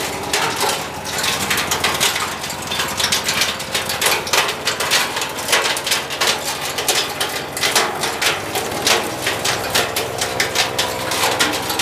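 A petrol engine runs loudly and steadily close by.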